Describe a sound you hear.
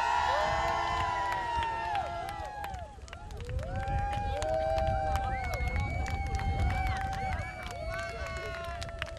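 A band plays lively music.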